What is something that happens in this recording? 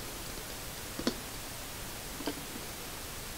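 Small objects click and tap close by.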